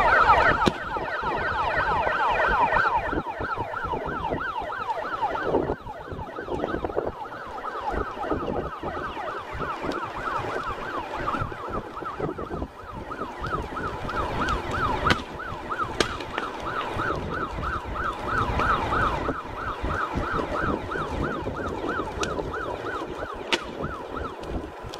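A siren wails rapidly in the distance.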